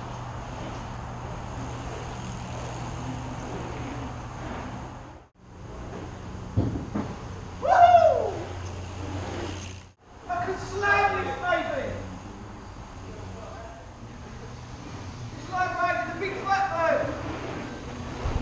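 Bicycle tyres roll and crunch over packed dirt in a large echoing hall.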